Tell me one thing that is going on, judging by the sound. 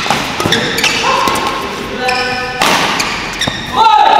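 Sneakers squeal sharply on a court floor.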